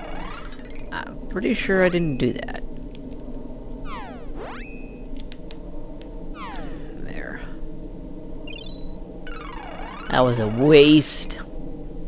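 Game music plays steadily throughout.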